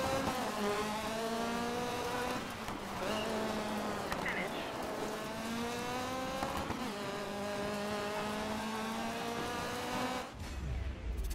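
A car engine revs high and climbs in pitch through repeated gear shifts.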